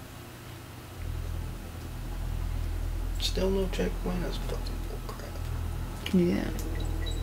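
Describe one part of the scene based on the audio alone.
Video game music plays softly.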